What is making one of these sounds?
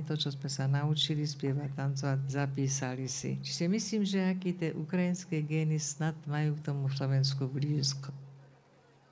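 A group of singers sings loudly over loudspeakers outdoors.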